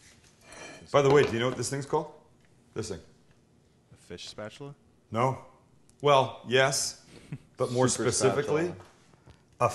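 A man talks calmly and clearly, close by.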